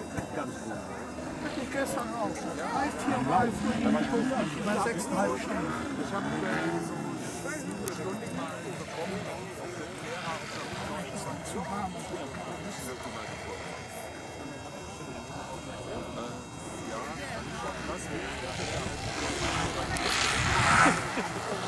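A small plane's engine drones overhead, growing louder as it swoops low and close.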